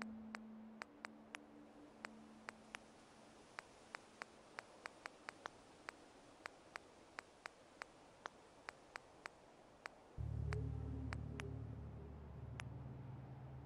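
Short, sharp menu clicks tick again and again at an uneven pace.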